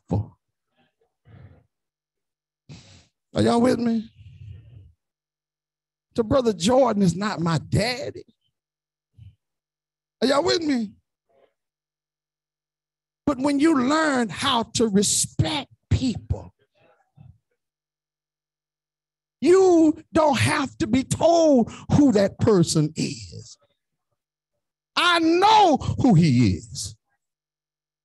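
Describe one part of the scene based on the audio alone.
A man preaches with animation into a microphone, in short bursts with pauses.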